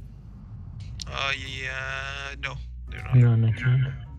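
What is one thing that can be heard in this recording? A magic spell crackles and bursts.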